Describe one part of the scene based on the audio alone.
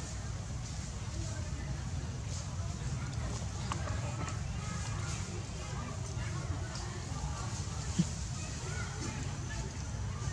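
A baby monkey rustles a dry twig.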